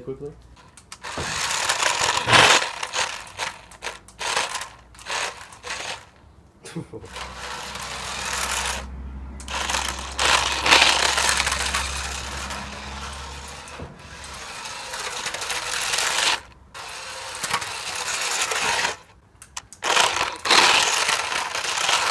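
A toy car's electric motor whirs as its tyres roll across concrete.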